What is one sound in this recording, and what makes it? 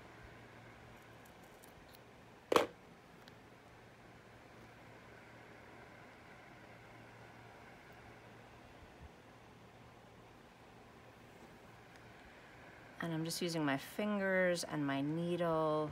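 A needle and thread pull softly through fabric.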